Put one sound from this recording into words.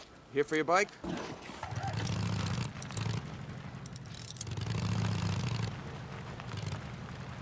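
A motorcycle engine rumbles and revs as the bike rides off.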